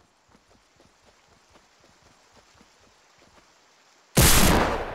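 Footsteps splash softly through shallow water.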